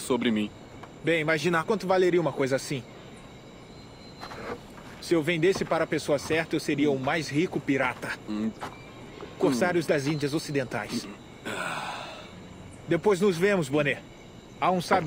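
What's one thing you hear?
A younger man speaks with animation.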